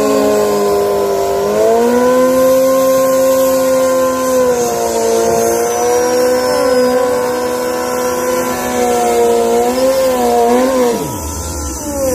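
A motorcycle engine roars loudly, holding a high rev.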